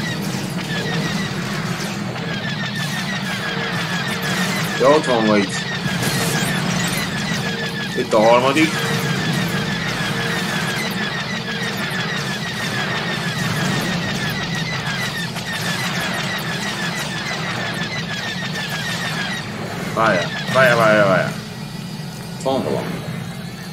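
A spacecraft engine hums steadily.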